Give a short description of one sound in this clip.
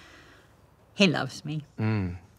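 An older woman speaks softly and close by.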